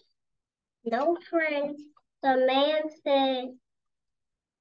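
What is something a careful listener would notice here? A young girl reads aloud slowly, heard over an online call.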